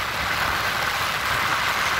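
A heavy truck engine rumbles as it passes close by.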